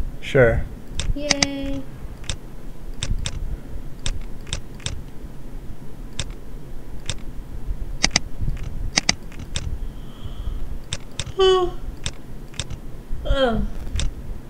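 Short sharp clicks sound again and again as track pieces are built.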